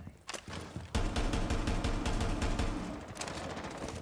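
A rifle fires in rapid bursts, close by.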